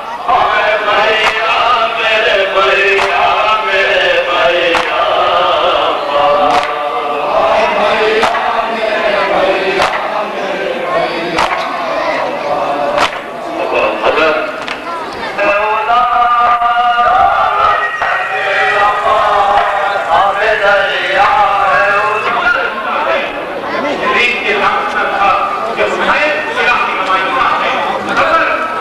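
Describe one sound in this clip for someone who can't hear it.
A man chants loudly through a loudspeaker.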